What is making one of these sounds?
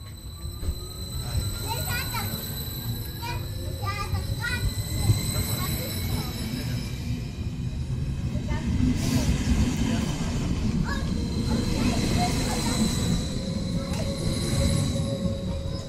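An electric double-deck train stands at a platform with its equipment humming.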